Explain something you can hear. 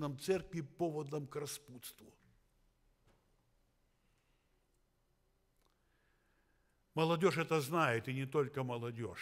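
An elderly man speaks with animation through a microphone, pausing between phrases.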